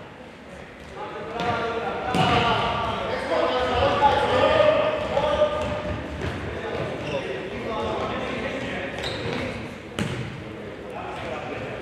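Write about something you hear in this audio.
A ball is kicked with sharp thuds in a large echoing hall.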